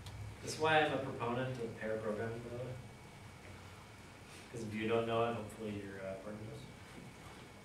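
A man speaks calmly to an audience, heard from across a room.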